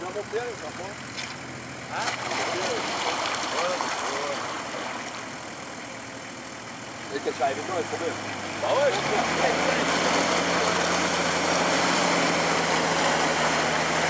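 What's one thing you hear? An engine idles low and then revs hard.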